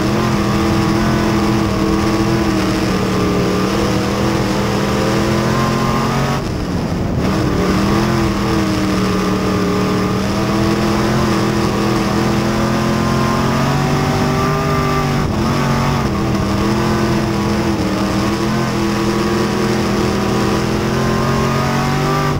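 A race car engine roars loudly from close by, dipping briefly and then revving back up.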